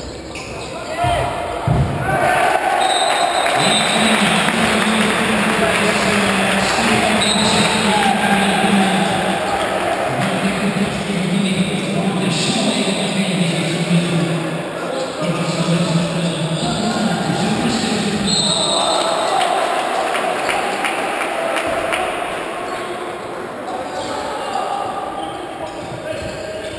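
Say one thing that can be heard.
A crowd of spectators cheers and chants loudly in a large echoing hall.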